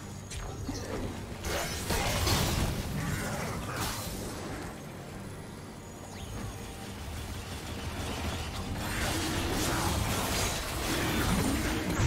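Weapons clash and strike with sharp hits.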